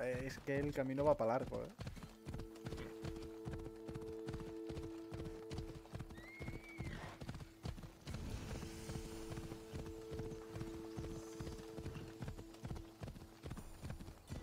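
Horse hooves thud rapidly in a steady gallop on a dirt path.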